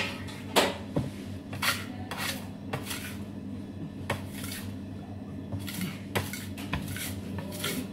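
A metal scraper scrapes across a steel table.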